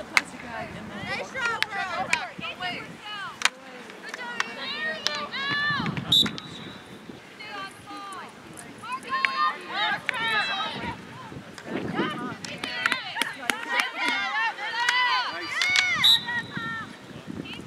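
Hockey sticks clack against a ball and against each other.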